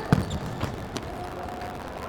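A ball is kicked sharply on an indoor court.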